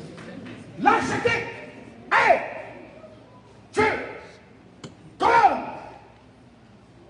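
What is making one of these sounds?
A man shouts forcefully in short bursts, with a ringing echo after each.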